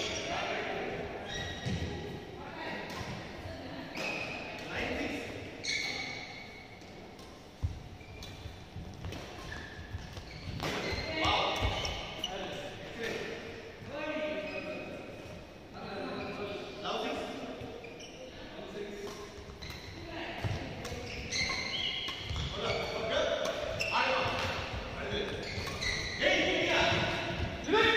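Shoes squeak and shuffle on a court floor.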